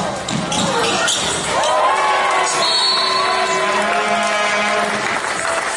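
Sneakers squeak sharply on a wooden court in an echoing hall.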